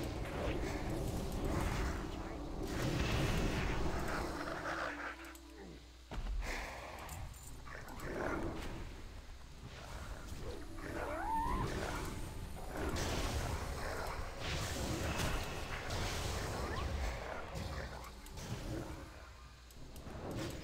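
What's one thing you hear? Weapons strike in quick blows.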